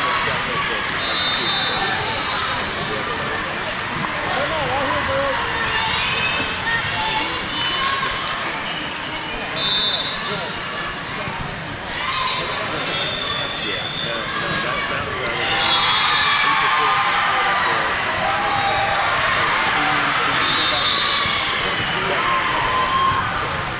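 Shoes squeak sharply on a hardwood court.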